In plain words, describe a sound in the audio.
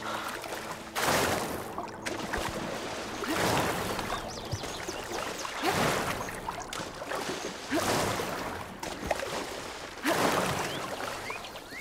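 Water splashes and swirls around a swimmer.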